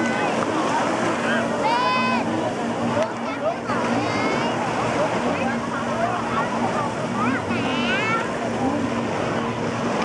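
A powerful water jet roars and sprays.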